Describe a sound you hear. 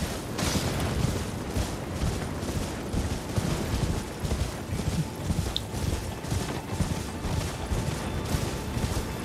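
A horse gallops with rhythmic hoof thuds on grass.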